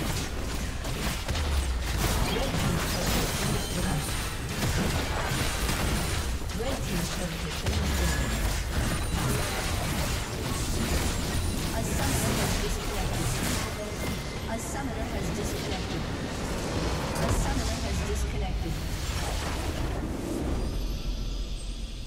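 Spell effects, blasts and clashes of a video game battle crash and whoosh densely.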